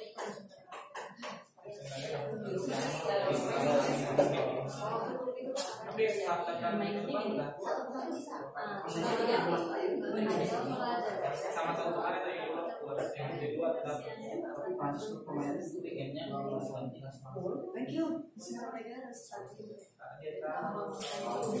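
Many adult women and men talk at once, their chatter echoing in the room.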